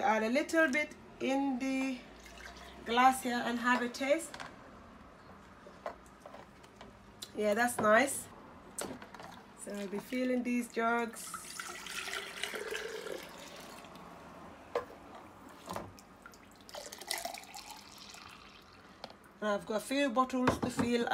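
Liquid sloshes and pours as a jug scoops it from a bowl.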